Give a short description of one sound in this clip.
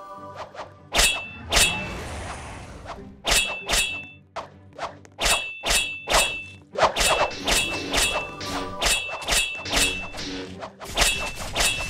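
Sword slashes ring out in a video game.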